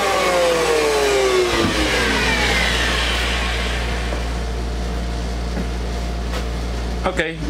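A power planer's motor hums and then winds down with a falling whine.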